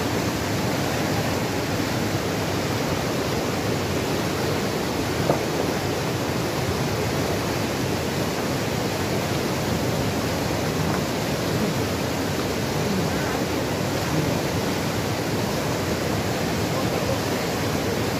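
A fast mountain river rushes and roars over rocks nearby.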